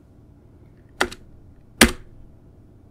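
A keyboard key clicks sharply.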